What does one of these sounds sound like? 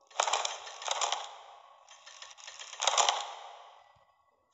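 Wooden puzzle panels slide and clunk into place.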